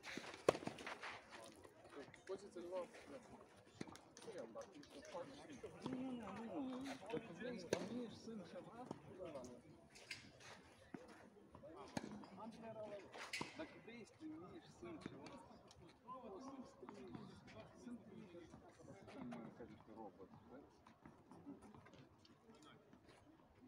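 Men talk casually outdoors, at a distance.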